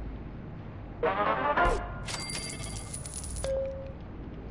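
A short electronic chime plays.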